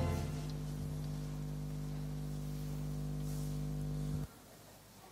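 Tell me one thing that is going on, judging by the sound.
A man chants a long, steady note into a microphone, then stops.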